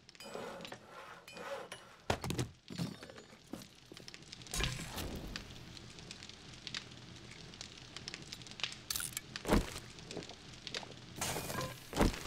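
Short clicks sound as menu items are picked.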